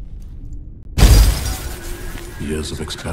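A loud magical blast whooshes and crackles.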